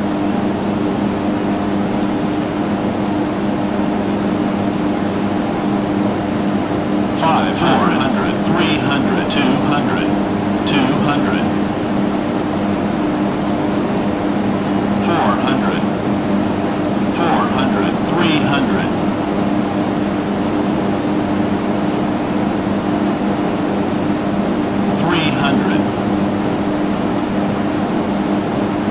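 A small propeller plane's engine drones steadily throughout.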